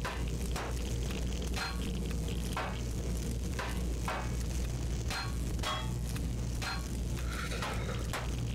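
A steady low electric hum drones throughout.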